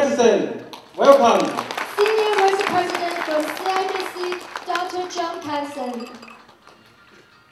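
People applaud in a large hall.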